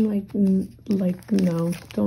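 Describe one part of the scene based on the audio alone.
A card slides out of a plastic sleeve.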